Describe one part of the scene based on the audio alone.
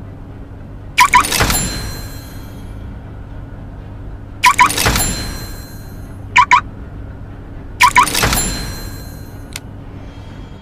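A game menu plays a bright chiming jingle as each upgrade is bought.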